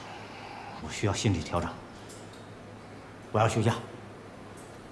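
A middle-aged man speaks calmly nearby.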